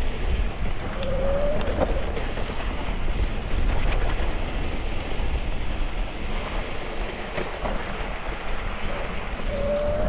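Wind rumbles loudly past.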